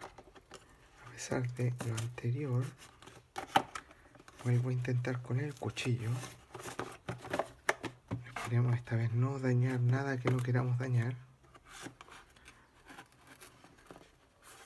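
A knife blade slices through cardboard.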